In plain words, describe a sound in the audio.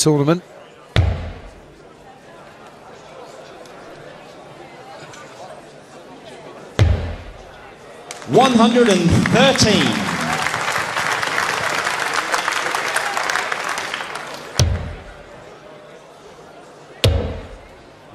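Darts thud into a board.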